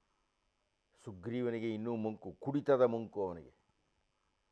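An elderly man speaks calmly and clearly into a microphone.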